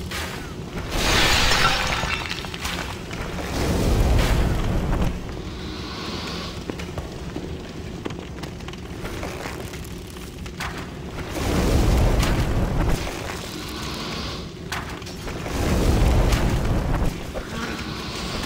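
Bursts of fire roar and crackle.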